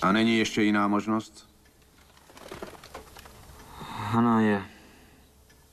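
An older man speaks calmly and quietly.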